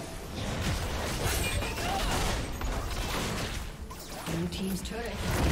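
Game spell effects and hits crackle and burst in a fast fight.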